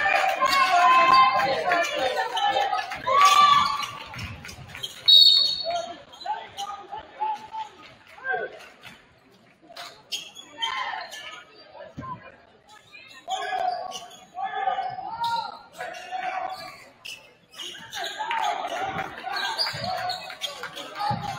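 A crowd cheers and shouts in a large echoing gym.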